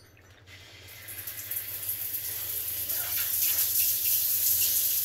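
Water runs hard from a tap.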